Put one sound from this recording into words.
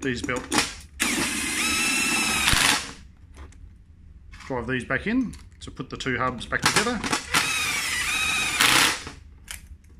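A cordless impact driver whirs in short bursts.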